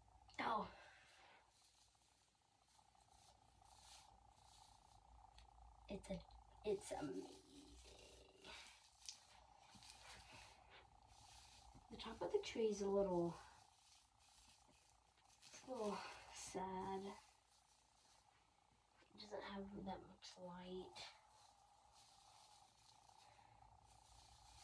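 Artificial pine needles rustle as a small tree is handled.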